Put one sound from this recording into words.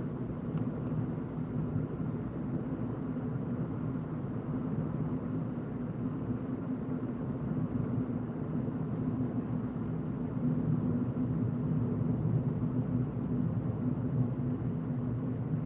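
Tyres roll with a low rumble on the road.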